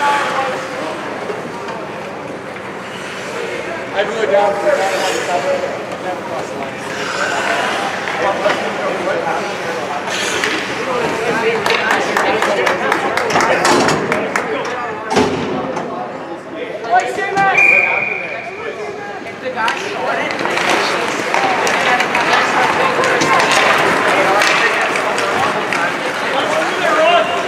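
A crowd of spectators murmurs and calls out nearby in an echoing rink.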